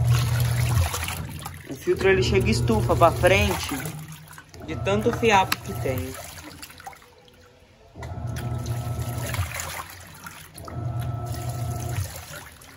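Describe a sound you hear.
A washing machine motor hums in repeated bursts as the drum agitates back and forth.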